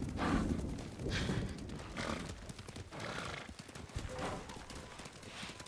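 A horse gallops, hooves thudding on soft ground.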